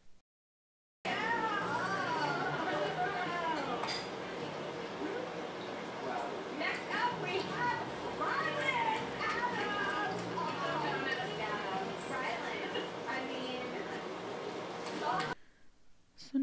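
Women talk and laugh with animation through a television speaker.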